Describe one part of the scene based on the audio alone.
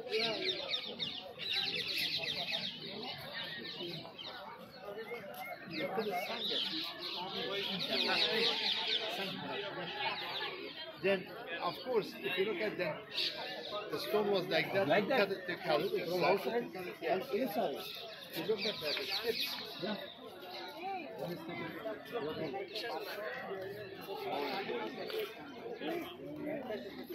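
A crowd of people chatter outdoors nearby.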